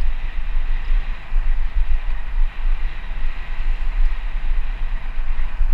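Wind buffets loudly past the microphone.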